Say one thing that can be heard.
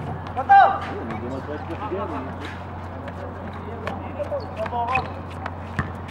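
Young men shout and call out across the court.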